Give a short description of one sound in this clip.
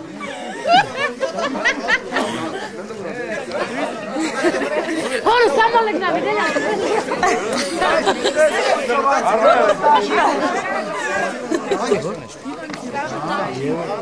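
A woman laughs and shouts with animation.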